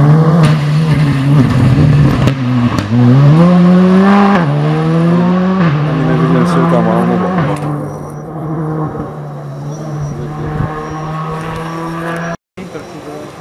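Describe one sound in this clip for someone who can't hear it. A rally car engine roars loudly, revving up and down through gear changes, then fades into the distance.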